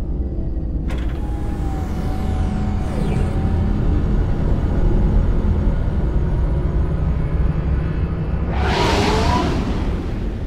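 A spaceship's engines roar steadily.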